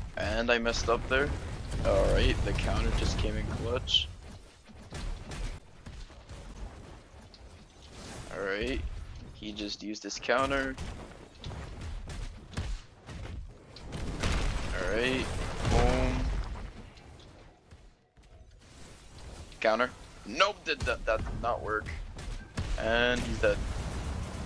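Heavy blows thud and stone rubble crashes.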